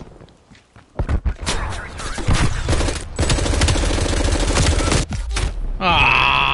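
A rifle fires rapid bursts close by.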